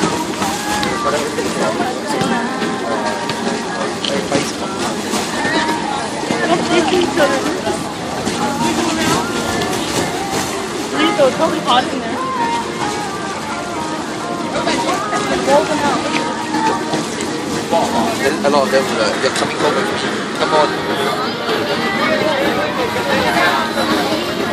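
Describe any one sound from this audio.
A crowd of children and adults chatters and shouts outdoors.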